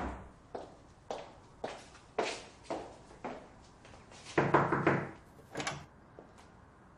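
High heels click on a wooden floor at a steady pace.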